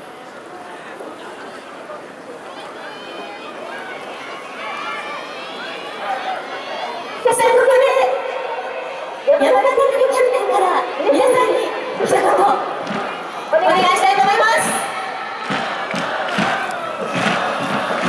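A large crowd of fans chants and sings loudly in an open stadium, growing louder.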